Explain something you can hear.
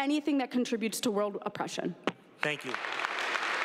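A young woman speaks firmly into a microphone in a large echoing hall.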